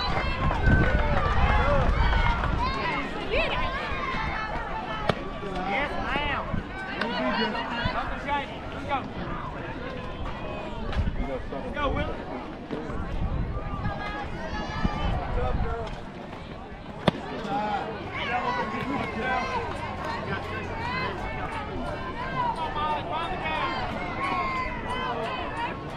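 Young girls chant and cheer loudly nearby.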